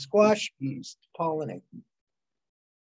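An elderly woman speaks calmly through a microphone on an online call.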